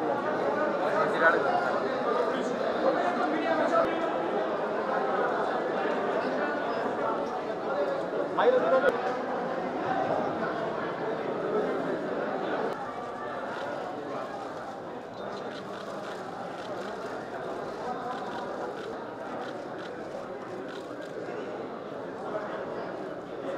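A crowd of men and women murmurs and talks indoors, with a light echo.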